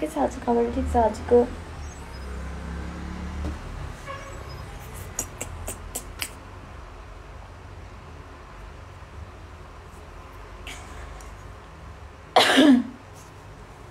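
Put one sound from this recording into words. A young woman speaks softly close to a phone microphone.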